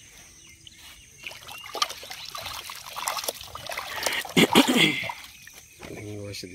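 Hands splash and rummage in water in a metal pot.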